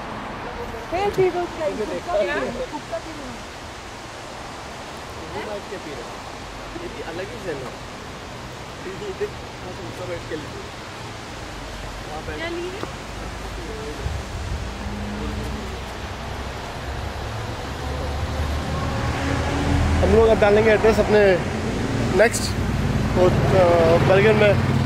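A young man talks close by, casually.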